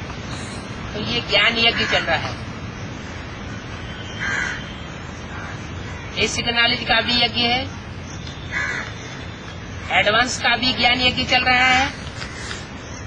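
An elderly man speaks calmly in bursts close to the microphone.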